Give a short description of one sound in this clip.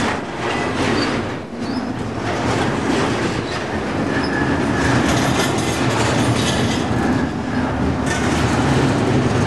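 Metal wheels squeal faintly on the rails.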